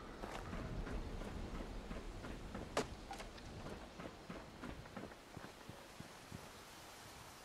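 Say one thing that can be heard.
Footsteps crunch over dry leaves and dirt.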